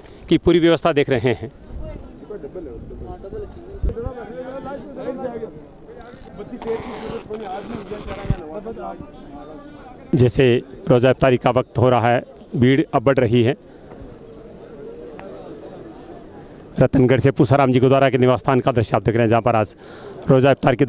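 A man speaks loudly and close to a microphone.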